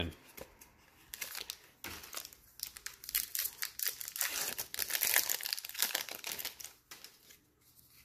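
A plastic wrapper crinkles and tears as it is pulled open.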